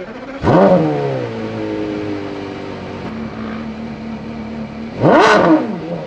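A Porsche Carrera GT's V10 engine idles.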